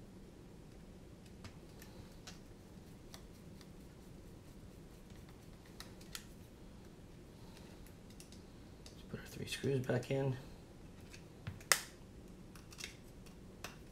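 Small plastic parts click and tap as hands handle a device.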